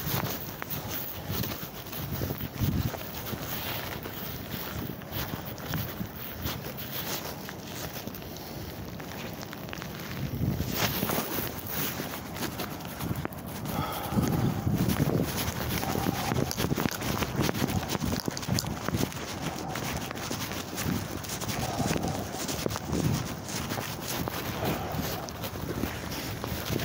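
A bag rustles and brushes against clothing.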